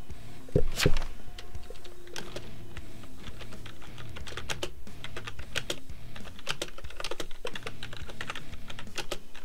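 Keyboard keys click rapidly as someone types.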